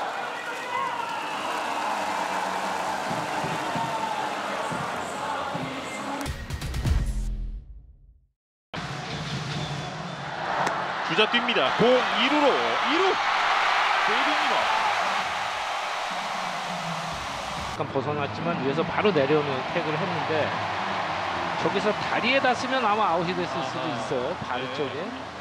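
A large stadium crowd cheers and chants in a steady roar.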